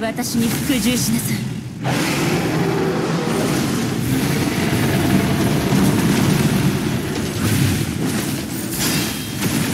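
Explosions and energy blasts crash and boom.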